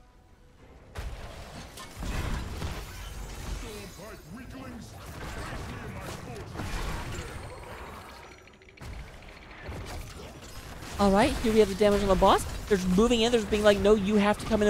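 Magic blasts and weapon blows clash and crackle in a fierce battle.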